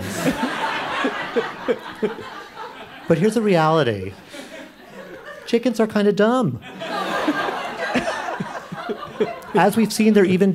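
An audience laughs in a large room.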